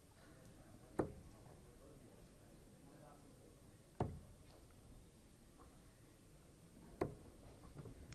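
Darts thud sharply into a dartboard, three times at even intervals.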